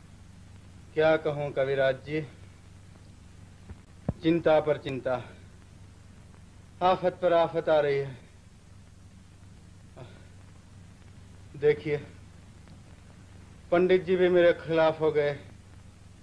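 A man speaks softly and earnestly, in short phrases with pauses.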